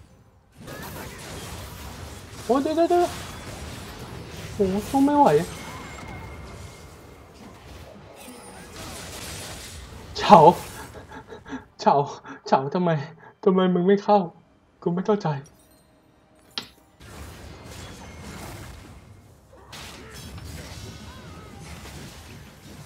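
Video game combat effects clash and whoosh.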